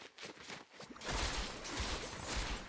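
Wind rushes loudly past during a fall.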